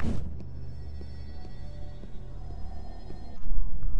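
Footsteps tap quickly on stone steps.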